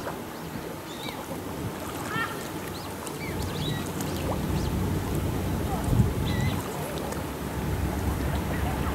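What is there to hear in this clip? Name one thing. Small waves lap gently against a pebbly shore.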